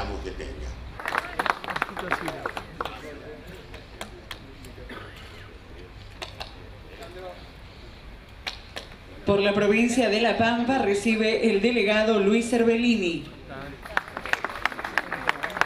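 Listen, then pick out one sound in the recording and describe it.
A small crowd applauds.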